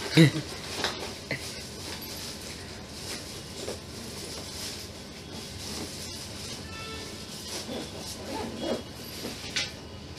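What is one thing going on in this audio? A man unzips a backpack.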